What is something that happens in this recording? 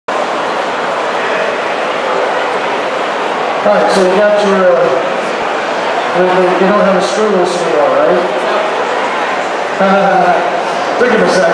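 A crowd murmurs and chatters steadily in a large hall.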